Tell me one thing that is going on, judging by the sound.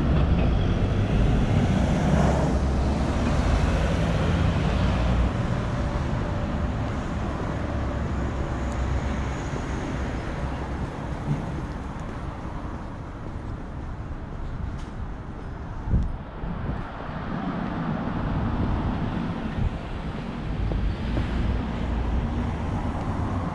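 Traffic rumbles past on a city street.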